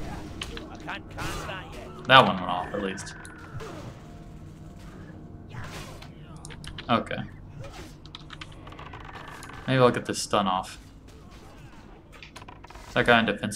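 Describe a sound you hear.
Game sound effects of spells and combat play.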